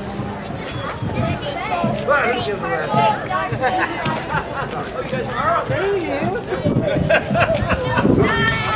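Children shout and squeal excitedly.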